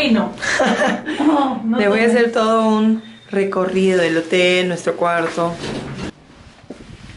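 A young woman laughs and talks with animation close by.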